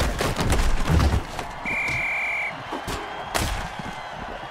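Heavy thuds and crunches sound as armoured players collide.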